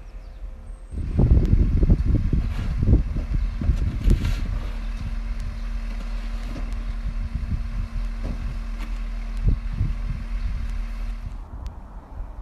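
A truck engine hums steadily nearby.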